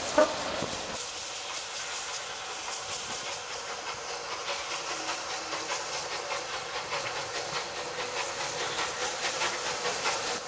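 A steam locomotive chuffs rhythmically as it approaches.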